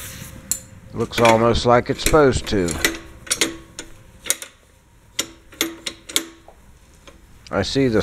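Metal parts clink and clank as a lever is worked by hand.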